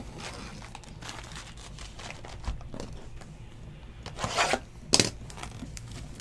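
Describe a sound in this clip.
A plastic wrapper crinkles as hands tear open a pack of cards.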